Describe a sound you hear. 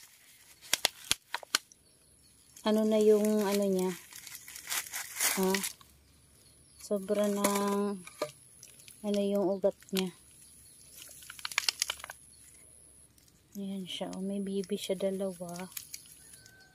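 Dry soil rustles and crumbles as a plant is handled.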